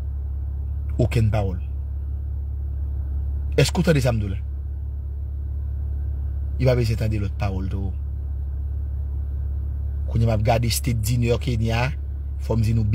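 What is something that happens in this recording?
A young man speaks close to the microphone in short, calm phrases with pauses.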